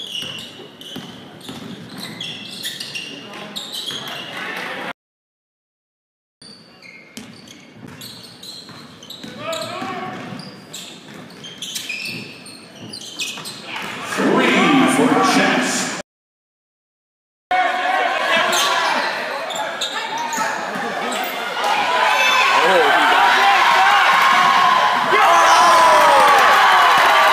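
Sneakers squeak sharply on a hard court in a large echoing gym.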